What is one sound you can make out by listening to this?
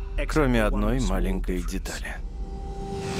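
A man groans and speaks breathlessly close by.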